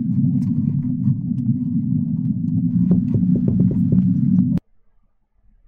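A loud, harsh low rumbling noise blares, then cuts off abruptly.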